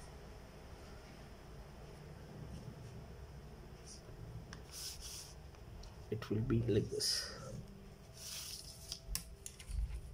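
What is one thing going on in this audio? A plastic ruler slides and taps on paper.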